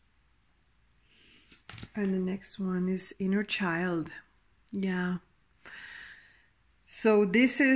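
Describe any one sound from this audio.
Playing cards rustle and tap softly as they are handled.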